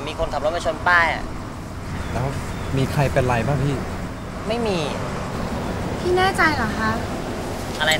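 A young man asks a short question.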